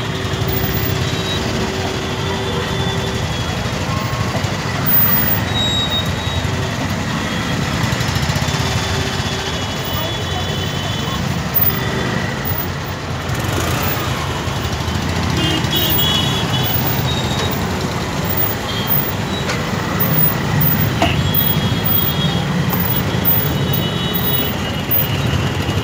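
Motorcycle and car engines idle in a traffic jam outdoors.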